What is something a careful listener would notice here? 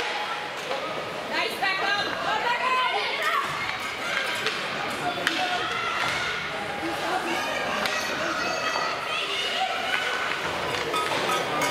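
Skates scrape and hiss across ice.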